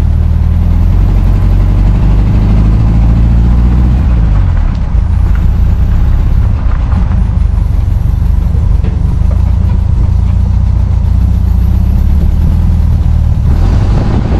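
An old car engine rumbles loudly as the car drives along.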